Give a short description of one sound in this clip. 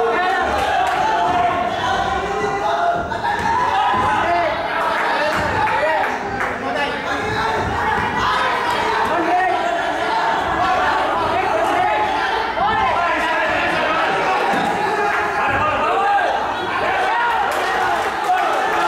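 A crowd of spectators shouts and cheers loudly throughout.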